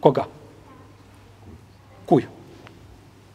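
A middle-aged man speaks briefly and calmly into a microphone.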